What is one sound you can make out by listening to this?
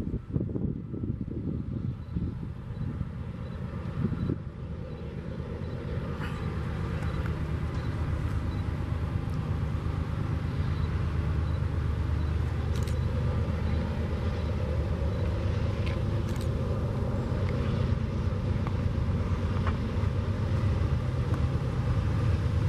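A diesel locomotive engine rumbles loudly as it approaches.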